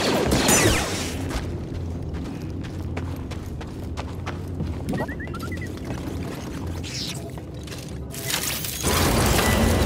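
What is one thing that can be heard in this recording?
A lightsaber hums with a low buzz.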